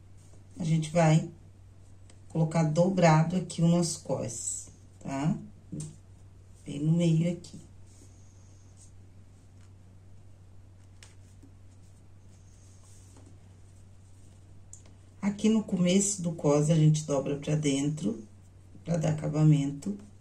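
Fabric rustles softly as it is folded and handled.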